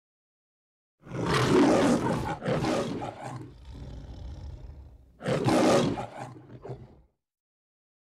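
A lion roars loudly, twice, with a deep growl.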